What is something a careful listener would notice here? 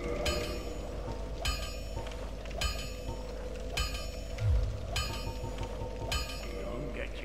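Short chimes ring out as menu selections are made.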